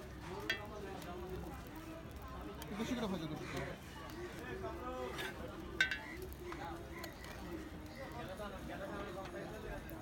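A metal spatula clinks and scrapes against a hot griddle.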